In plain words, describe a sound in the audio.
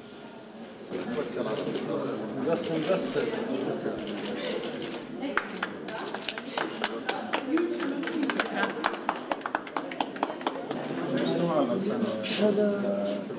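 A crowd chatters and murmurs in a lively gathering.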